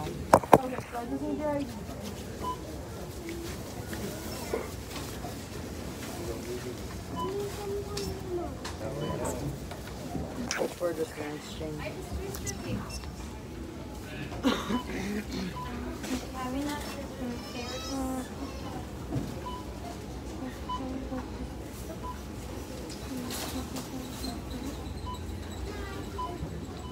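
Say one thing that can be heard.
A young girl talks close by, her voice muffled.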